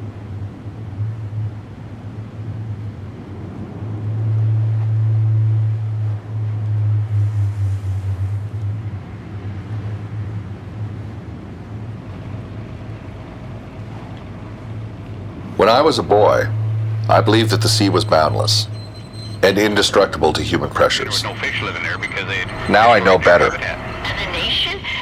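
A boat engine drones low and steady.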